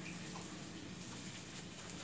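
Water pours from a plastic watering can into soil in a pot.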